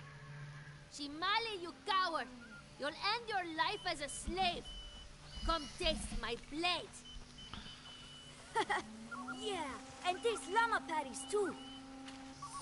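A young boy shouts excitedly.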